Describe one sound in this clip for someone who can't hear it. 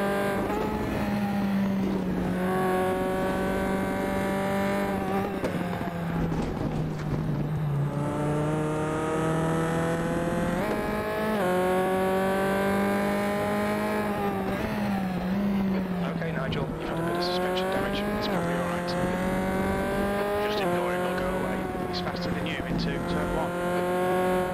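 A racing car engine roars, its pitch rising through the gears and dropping as it shifts down.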